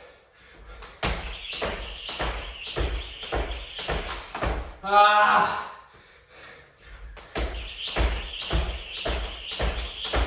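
A jump rope slaps the floor in a quick, steady rhythm.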